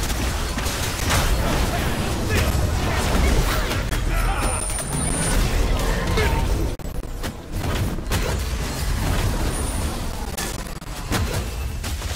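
Magic spells burst and crackle.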